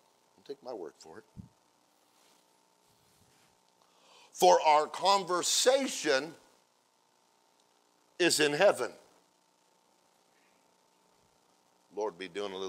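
A man speaks with emotion through a microphone, pausing between phrases.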